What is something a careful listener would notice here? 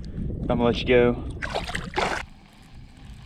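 Water splashes close by as a hand stirs it.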